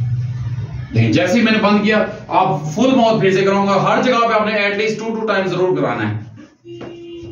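A middle-aged man speaks close by with animation.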